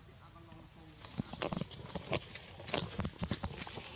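Monkeys scuffle and rustle through grass up close.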